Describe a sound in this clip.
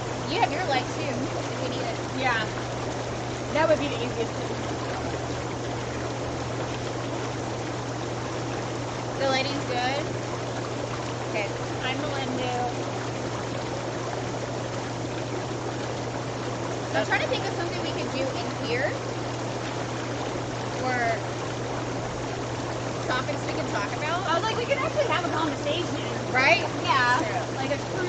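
Young women chat and laugh nearby.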